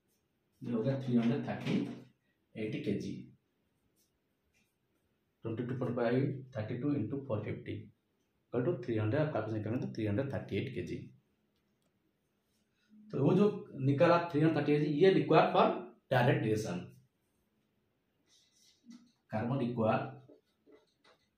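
A man speaks calmly, explaining, close by.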